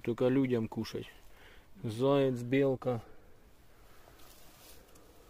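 Dry leaves rustle as a mushroom is pulled from the ground.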